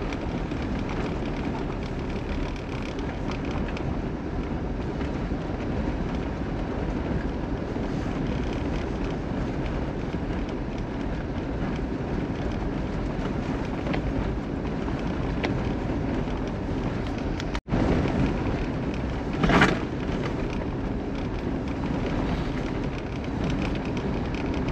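Tyres crunch and rumble over packed snow.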